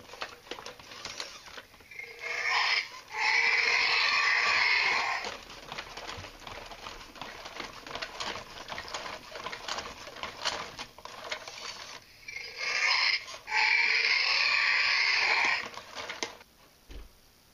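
A toy robot dinosaur whirs and clicks as it walks.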